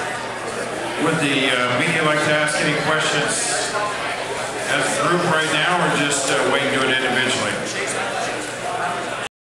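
A man speaks loudly through a microphone with animation in an echoing room.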